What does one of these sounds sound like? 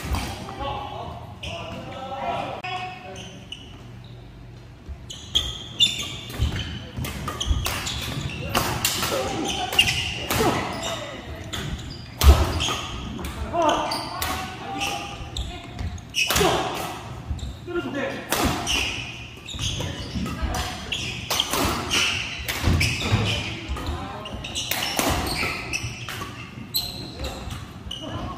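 Shoes squeak and thud on a wooden floor.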